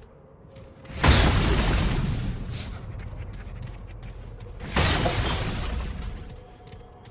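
A weapon strikes with loud, sharp bursts of noise.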